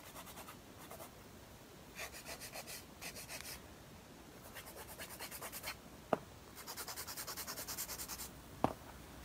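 A nail file rasps back and forth against a fingernail.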